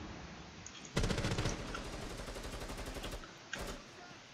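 A rifle fires a rapid burst of shots, echoing in a room.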